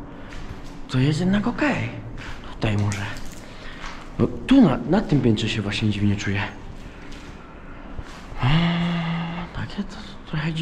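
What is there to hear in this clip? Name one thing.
A young woman talks nearby with animation.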